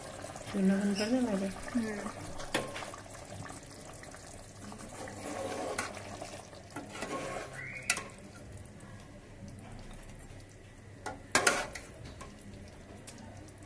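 A curry simmers and bubbles gently in a pot.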